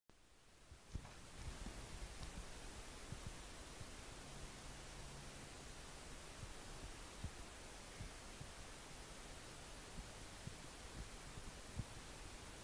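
Milk squirts rhythmically into a metal bucket.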